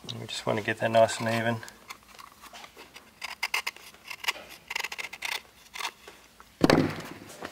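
Metal tools click and clack in a man's hands.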